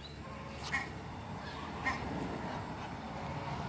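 A duck flaps its wings briefly.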